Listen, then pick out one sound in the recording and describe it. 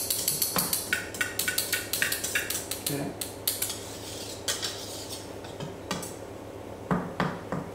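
Dry flour patters through a sieve tapped rapidly over a metal bowl.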